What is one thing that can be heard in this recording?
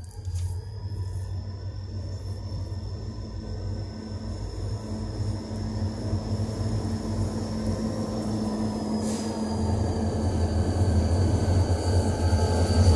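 A train rumbles in the distance, growing louder as it approaches.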